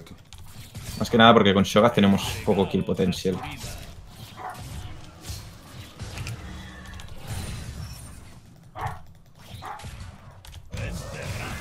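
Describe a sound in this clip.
Video game combat effects zap and clash.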